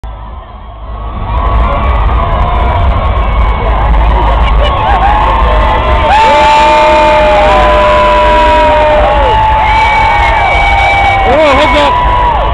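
A crowd of people cheers and shouts loudly outdoors.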